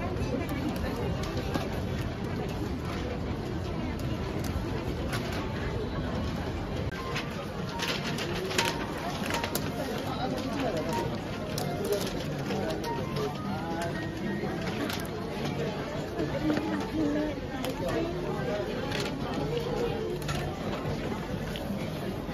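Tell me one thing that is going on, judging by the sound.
Paper crinkles and rustles as a box is wrapped.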